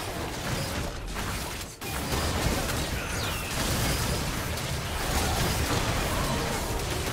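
Game fight effects clash and burst loudly.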